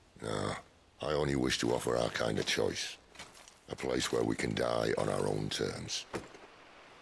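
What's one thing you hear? A man speaks calmly and earnestly, close by.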